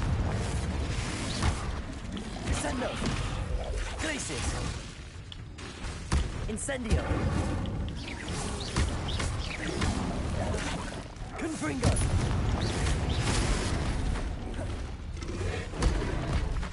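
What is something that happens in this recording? A beast snarls and squeals.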